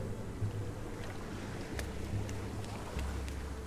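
A child's footsteps patter softly on sand.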